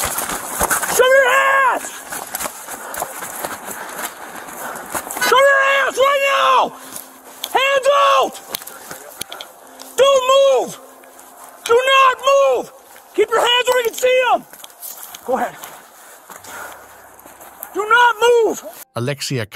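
A man shouts commands loudly and urgently, close by.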